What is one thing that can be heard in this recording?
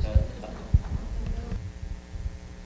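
A woman speaks quietly at a distance.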